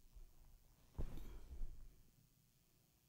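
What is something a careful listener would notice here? A chair thuds and creaks as a man sits down.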